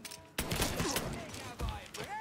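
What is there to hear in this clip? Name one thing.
Gunshots crack.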